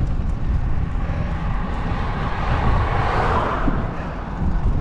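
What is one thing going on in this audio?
A car approaches and whooshes past close by.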